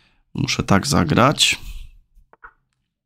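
A man speaks briefly into a close microphone.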